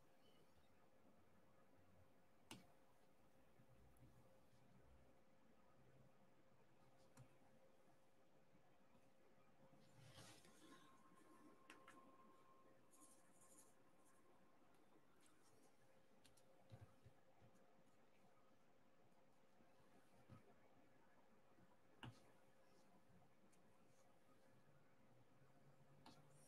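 A pen tool taps and clicks softly as small beads are pressed into place.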